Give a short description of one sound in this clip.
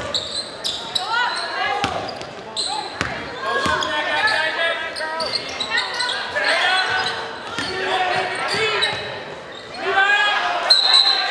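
Sneakers squeak sharply on a wooden floor in an echoing gym.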